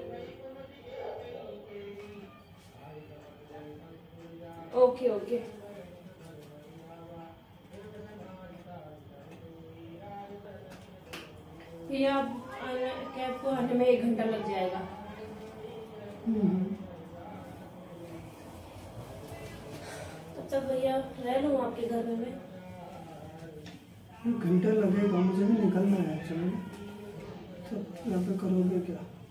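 A woman talks on a phone close by, with animation.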